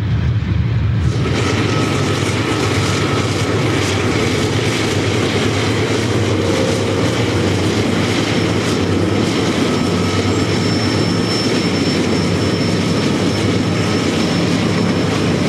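Diesel locomotives roar as they climb past in the distance.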